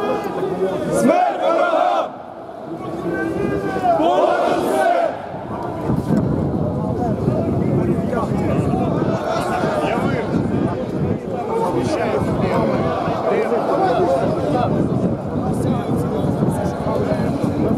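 Many boots tramp on pavement as a crowd marches.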